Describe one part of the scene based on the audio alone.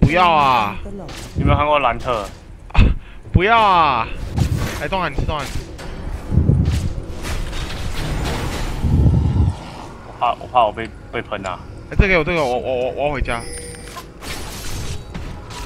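Fantasy battle effects whoosh and crackle during a fight.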